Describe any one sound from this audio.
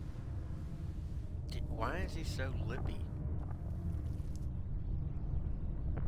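A man speaks quietly and gravely.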